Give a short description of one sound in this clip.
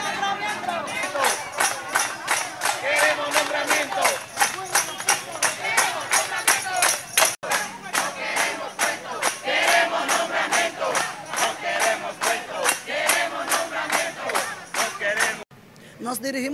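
A crowd claps hands in a steady beat.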